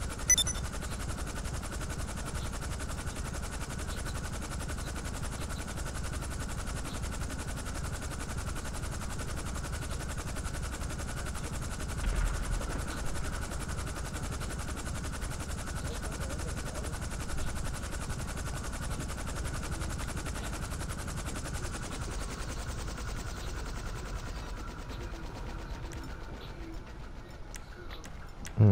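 A helicopter's rotors thump steadily, close by.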